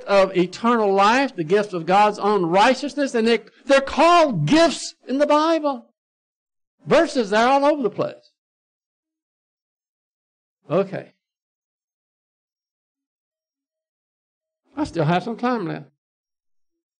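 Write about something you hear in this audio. An elderly man speaks with animation through a microphone, pausing often.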